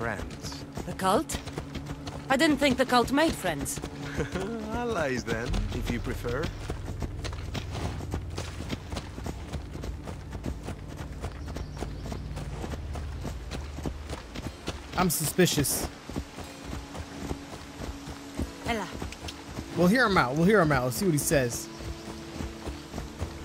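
Horses' hooves thud steadily on a dirt track.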